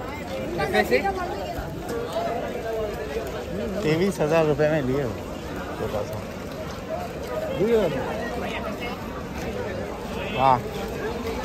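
A crowd of men talk and call out loudly outdoors.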